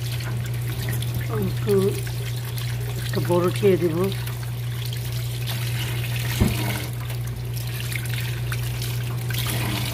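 Tomatoes knock softly against a bowl as a hand picks them up.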